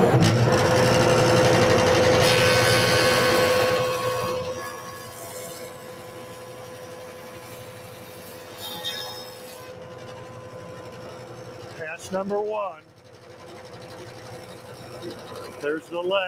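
A jointer's motor hums steadily.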